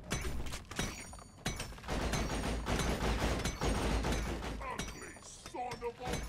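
Crystal rock shatters and crumbles under a pickaxe.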